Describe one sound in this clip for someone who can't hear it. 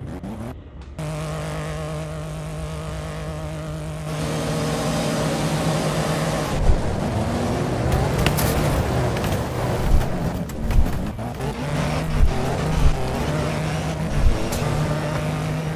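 Small racing car engines whine and roar steadily.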